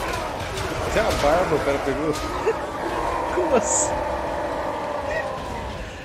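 A man laughs loudly into a microphone.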